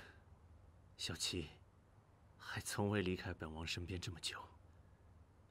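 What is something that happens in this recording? A young man speaks softly and calmly, close by.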